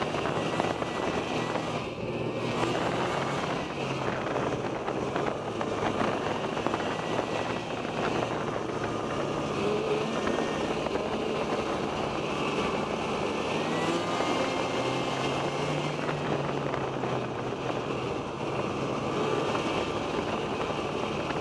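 Skis and tracks rumble over bumpy snow.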